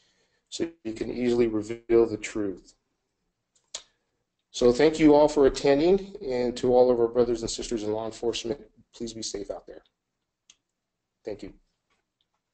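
A man speaks calmly into a close microphone, as if on an online call.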